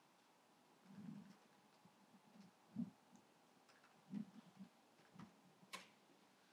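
A woman speaks quietly and haltingly through a microphone.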